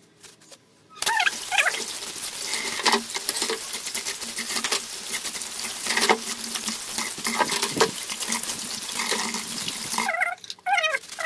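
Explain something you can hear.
Water pours from a tap into a basin of water.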